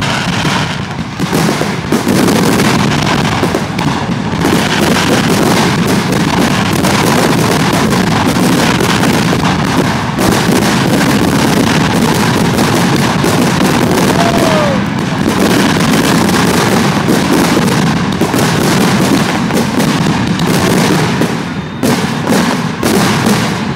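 Fireworks burst in rapid, booming crackles overhead.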